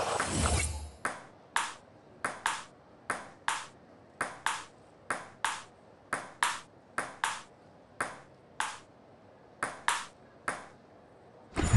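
A table tennis ball clicks back and forth, bouncing on the table and striking paddles in a quick, even rally.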